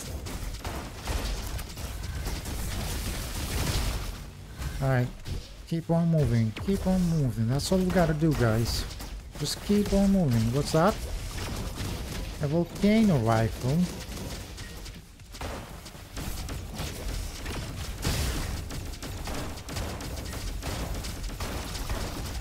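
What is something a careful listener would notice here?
Gunfire from a game weapon fires in rapid bursts.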